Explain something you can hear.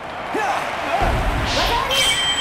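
A judoka is thrown and lands with a heavy thud onto a mat.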